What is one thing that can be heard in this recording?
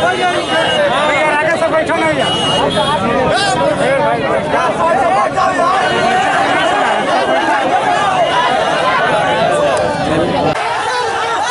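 A large crowd of men and women murmurs and chatters outdoors.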